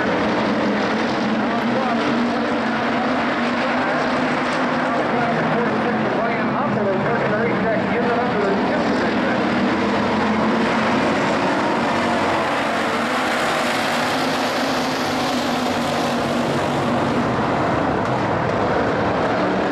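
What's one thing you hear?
Race car engines roar loudly, passing close by.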